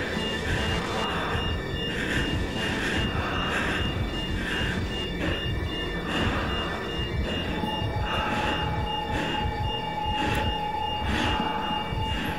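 A person breathes heavily and rasps through a gas mask.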